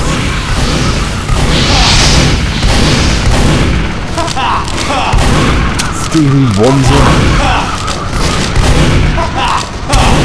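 A shotgun fires in loud, repeated blasts.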